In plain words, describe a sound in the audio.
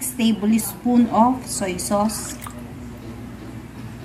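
Thick liquid pours and splashes into a metal bowl.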